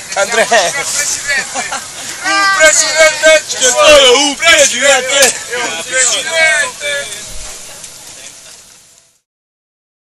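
A crowd of men and women sings and chants loudly.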